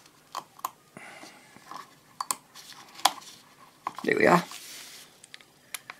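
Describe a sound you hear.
Small parts click and rattle as they are handled.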